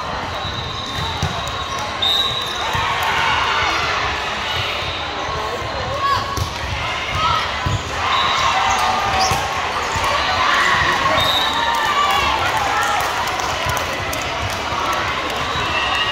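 A crowd of people chatters and cheers in a large echoing hall.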